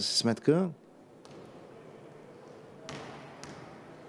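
A basketball bounces on a wooden court floor.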